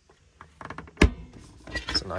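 A cabinet door latch clicks.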